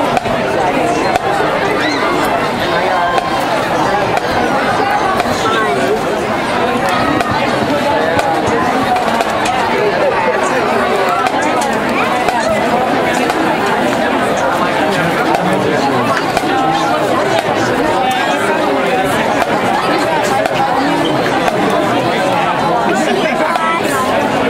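A bass drum booms.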